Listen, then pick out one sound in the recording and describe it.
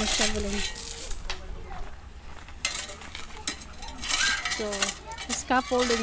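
A shovel scrapes and digs into gravelly soil.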